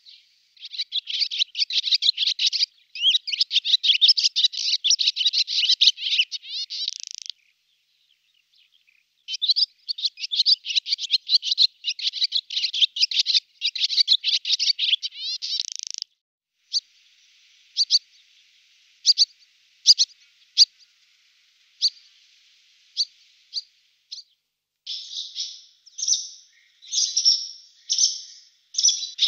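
A swallow sings a fast twittering song with rattling trills.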